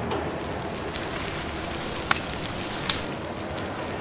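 A fire roars in a firebox.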